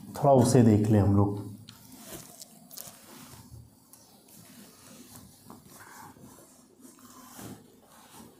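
A cloth duster rubs across a whiteboard.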